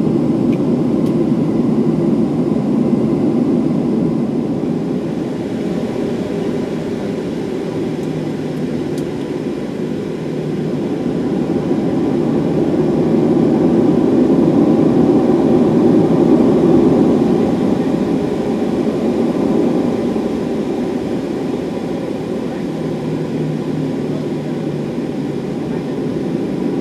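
Jet engines roar steadily, heard from inside an airplane cabin.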